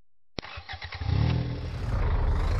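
A truck engine rumbles at idle.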